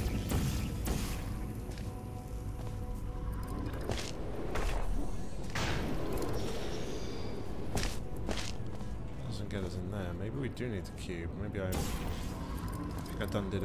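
A game's energy gun fires with short sharp zaps.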